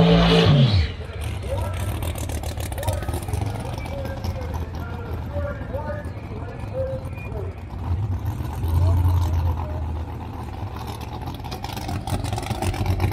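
A race car engine idles with a deep, steady rumble.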